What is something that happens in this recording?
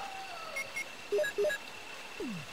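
Short electronic menu beeps sound several times.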